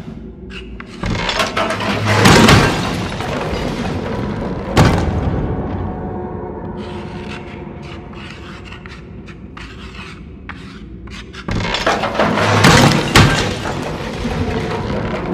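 A metal locker topples and crashes to a wooden floor with a loud clang.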